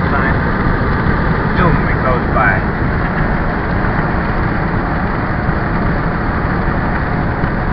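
Tyres and wind roar from inside the cabin of a car at highway speed.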